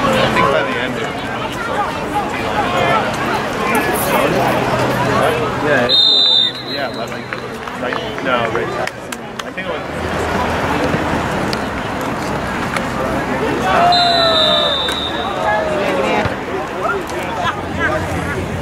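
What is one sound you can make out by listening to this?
Many young men and onlookers shout and chatter outdoors.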